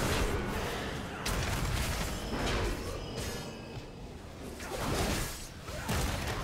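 Magical spell effects whoosh and crackle in repeated bursts.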